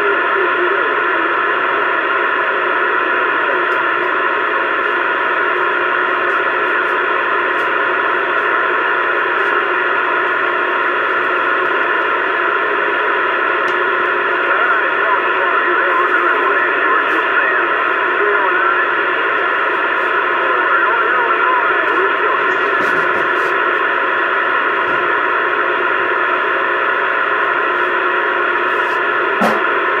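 A CB radio hisses with dense static through its speaker.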